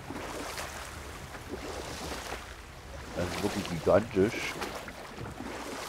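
Oars splash through water as a boat glides along.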